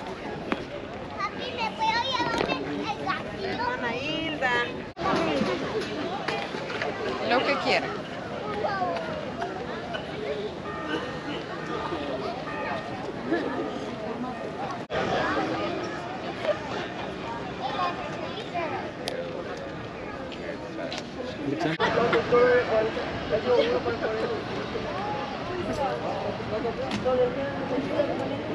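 Many people chatter and talk outdoors at a distance.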